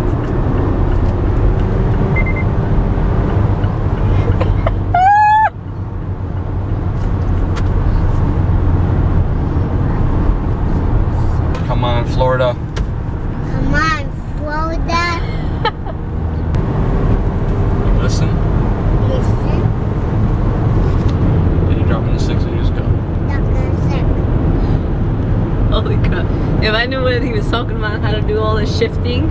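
A car engine hums and tyres roll steadily on a highway.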